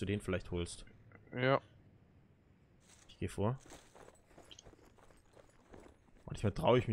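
Footsteps rustle softly through tall grass.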